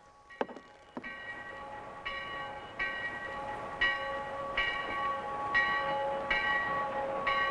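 A steam locomotive chugs along with a steady rhythmic puffing.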